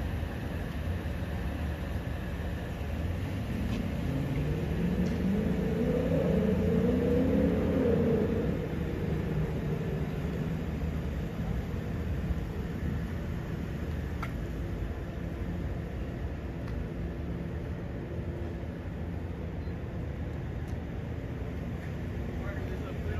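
A low city hum carries on steadily outdoors.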